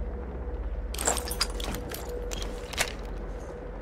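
A rifle clicks and clatters as it is handled.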